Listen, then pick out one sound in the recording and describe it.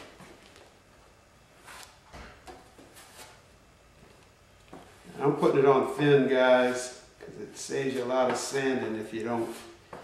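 A sponge rubs softly across a metal plate.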